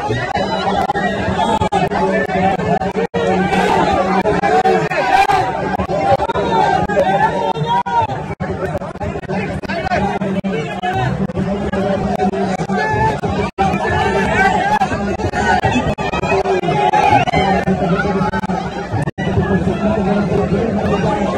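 A large crowd chants and cheers outdoors.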